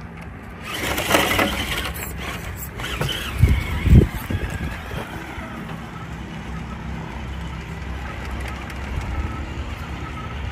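Plastic tyres scrape and crunch on rough stone.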